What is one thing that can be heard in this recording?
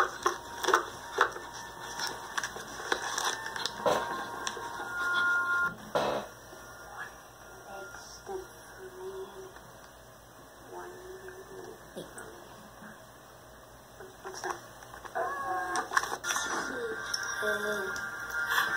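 A young child talks and laughs, heard through a small laptop speaker.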